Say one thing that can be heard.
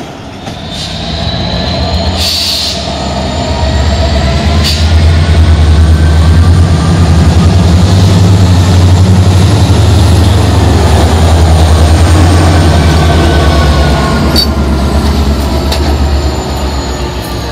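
A diesel locomotive engine rumbles loudly as it approaches and passes close by.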